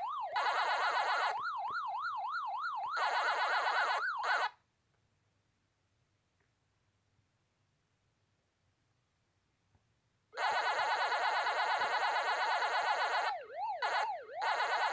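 An arcade game plays a fast, buzzing electronic siren and chomping bleeps.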